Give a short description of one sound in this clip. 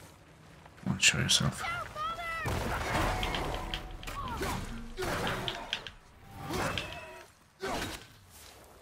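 Blows and impacts thud and clash in a fight.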